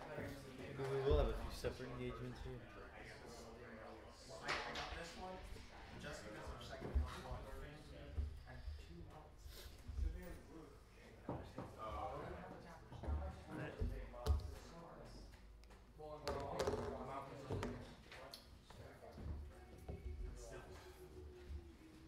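Plastic game pieces click and scrape on a table.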